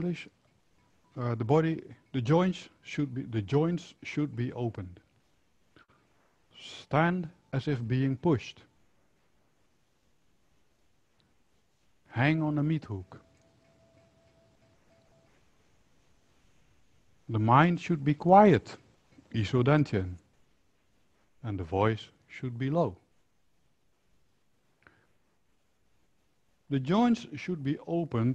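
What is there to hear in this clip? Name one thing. A middle-aged man speaks calmly and clearly into a close microphone, with pauses.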